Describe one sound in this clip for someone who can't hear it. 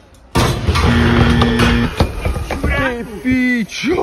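A metal bike clatters to the ground in a crash.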